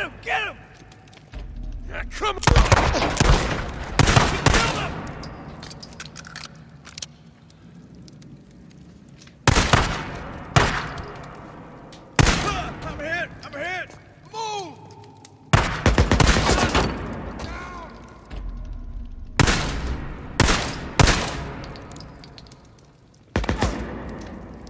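Gunshots fire in loud bursts, echoing in an enclosed space.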